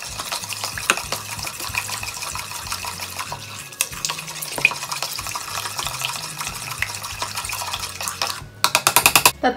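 A spoon scrapes and taps against a bowl while stirring batter.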